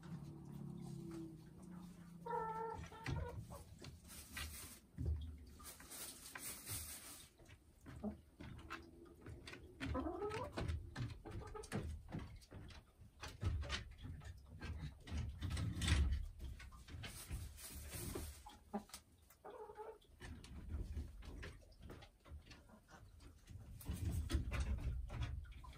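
Straw rustles as a hen shifts in its nest.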